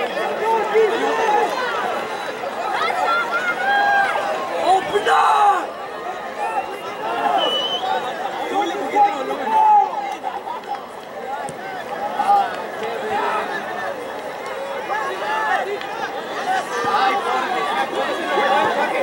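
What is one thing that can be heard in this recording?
Many voices shout and call out across an open field outdoors.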